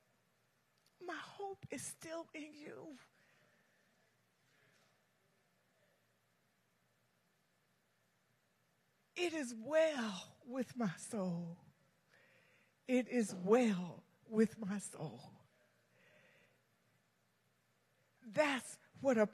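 A woman speaks calmly through a microphone in a large echoing hall, with pauses between phrases.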